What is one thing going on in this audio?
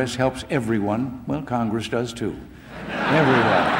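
An elderly man speaks calmly into a microphone in a large hall.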